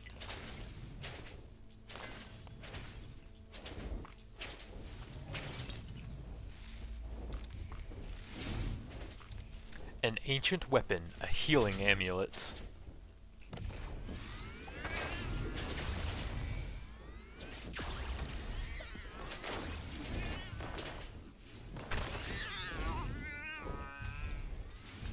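Game combat effects crackle and whoosh with magical blasts.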